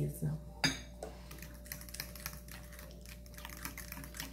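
A whisk taps and clinks against a glass bowl while beating batter.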